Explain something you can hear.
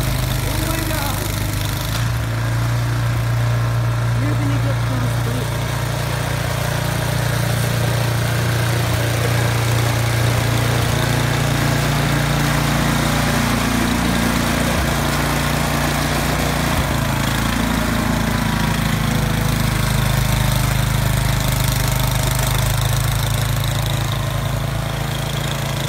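A snowblower engine roars steadily close by.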